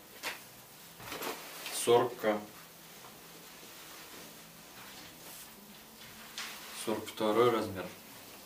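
Fabric rustles as trousers are lifted and laid down.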